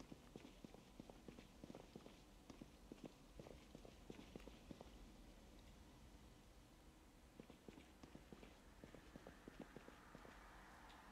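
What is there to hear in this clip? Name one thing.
Footsteps tap quickly on a hard floor, pausing briefly midway.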